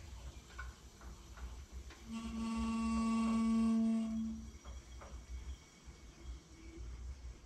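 Liquid gurgles as it is poured from a bottle.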